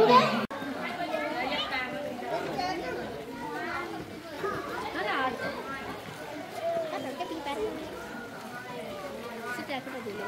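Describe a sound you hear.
A crowd of adults and children chat and call out nearby outdoors.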